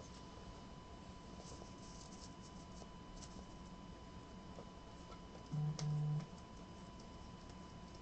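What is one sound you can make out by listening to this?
Cards click softly against each other as they are shuffled.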